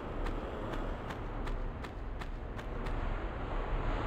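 Footsteps patter quickly on a stone floor.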